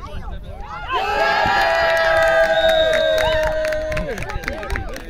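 Young players shout across an open field.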